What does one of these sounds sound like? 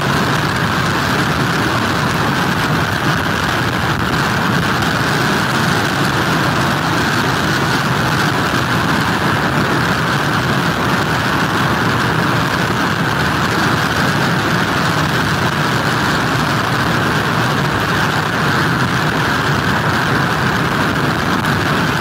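Heavy surf crashes and churns against a pier.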